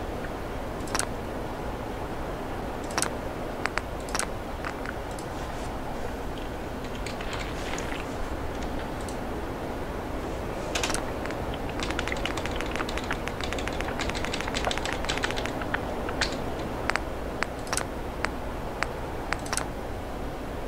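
Short soft clicks sound now and then as menu choices are made.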